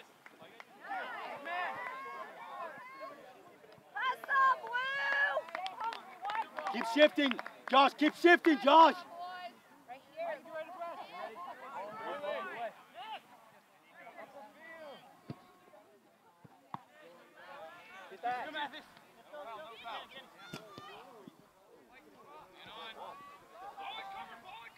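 Young players and spectators call out across an open field.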